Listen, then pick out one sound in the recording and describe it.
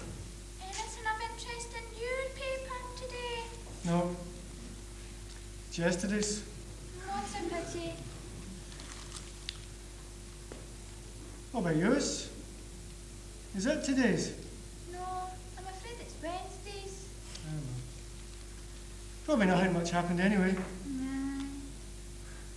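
A young girl speaks in a clear voice.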